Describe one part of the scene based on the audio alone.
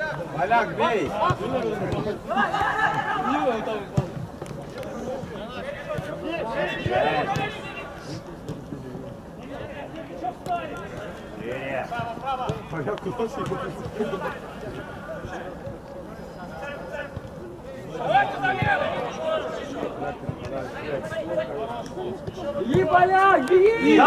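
Men shout across an outdoor pitch.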